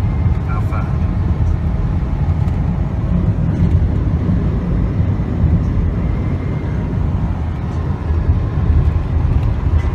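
Tyres rumble low and steadily on the road.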